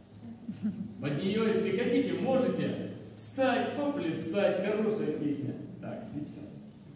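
An elderly man speaks through a microphone in an echoing hall.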